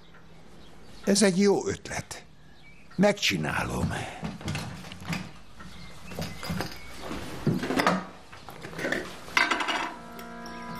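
A man speaks with animation nearby.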